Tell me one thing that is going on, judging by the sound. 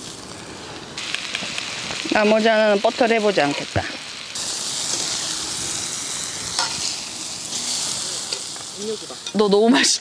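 Meat sizzles on a grill.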